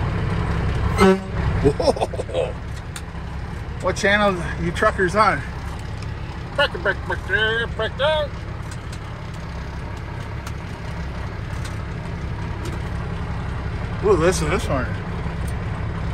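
A man talks into a radio handset.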